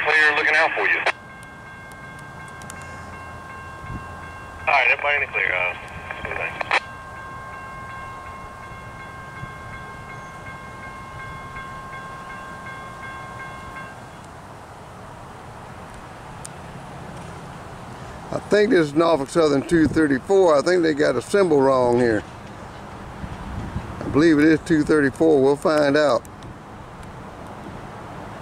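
A train rumbles as it approaches from a distance.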